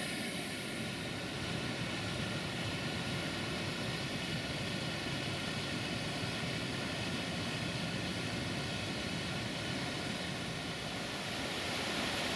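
A waterfall pours steadily nearby.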